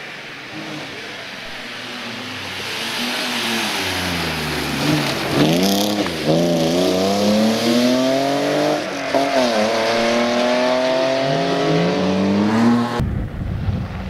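A rally car engine roars and revs hard as it speeds past close by.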